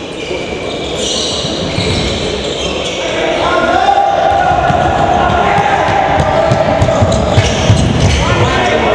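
Sneakers squeak sharply on a hard court floor in a large echoing hall.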